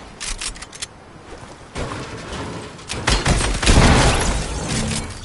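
Gunshots fire in quick bursts, loud and close.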